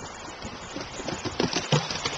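A dog's paws patter quickly along a wooden boardwalk.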